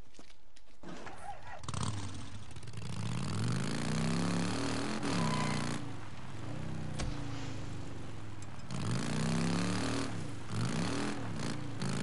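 A motorcycle engine starts and revs up and down as it rides along.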